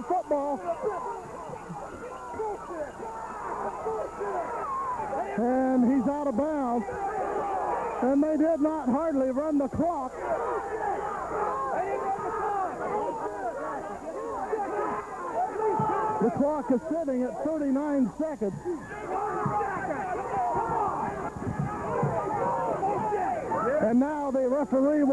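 A crowd of young men shouts and cheers close by.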